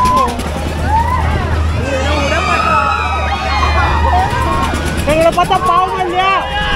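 A fairground ride hums and rumbles steadily as it turns.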